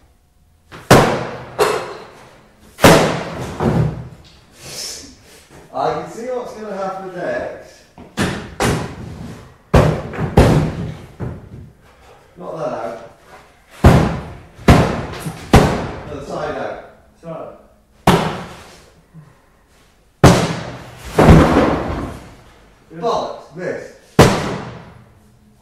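A sledgehammer smashes into an old piano with loud, ringing blows.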